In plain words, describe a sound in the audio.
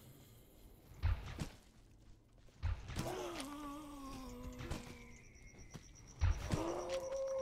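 Heavy shots thump out a few seconds apart.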